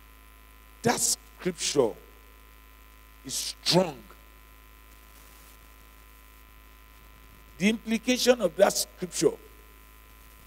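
A man preaches with emphasis into a microphone, pausing between phrases.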